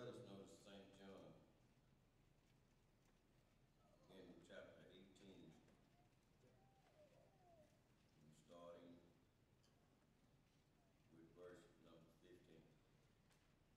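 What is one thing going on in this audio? An elderly man speaks slowly and calmly through a microphone in a large echoing hall.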